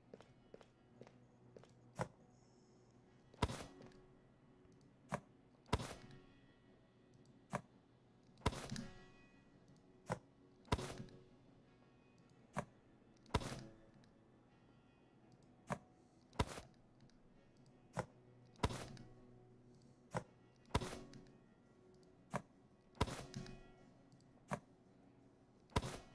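Cans clunk into place on a vending machine shelf, again and again.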